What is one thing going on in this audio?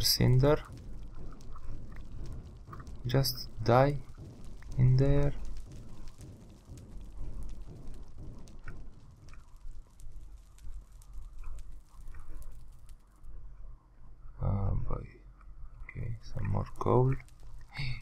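Flames crackle softly.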